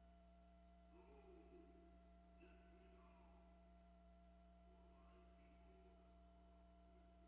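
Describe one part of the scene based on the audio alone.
A man calls out faintly.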